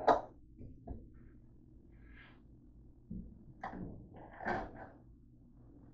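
Small objects click onto a tabletop.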